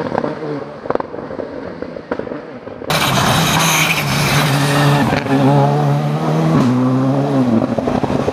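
Tyres crunch and spray over a wet gravel track.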